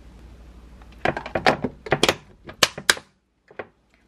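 A plastic lid snaps shut on a container with several clicks.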